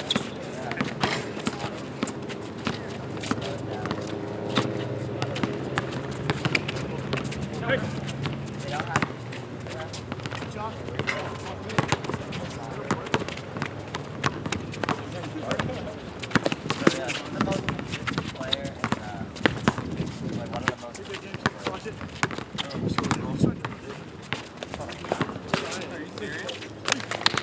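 A basketball bounces repeatedly on an outdoor court.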